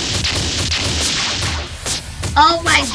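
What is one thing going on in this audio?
A loud energy blast roars and crackles.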